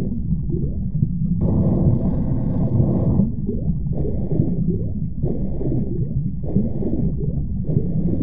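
Water rushes and gurgles in a low, steady underwater rumble.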